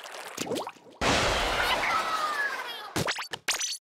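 A loud rushing whoosh sweeps past as a character is launched into the air.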